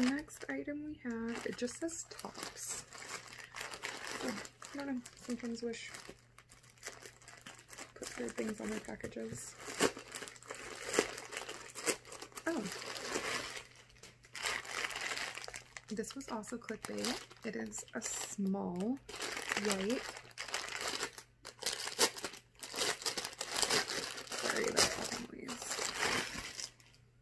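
Plastic packaging crinkles and rustles.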